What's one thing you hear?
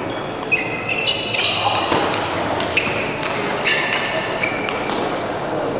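A table tennis ball clicks quickly back and forth off paddles and the table.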